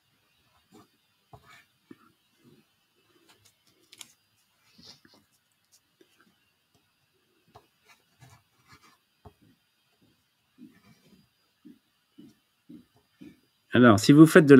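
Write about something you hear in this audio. A soft dry pastel scratches and rubs on paper.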